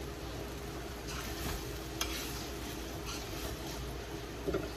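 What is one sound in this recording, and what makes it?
A metal spoon scrapes and stirs food in a frying pan.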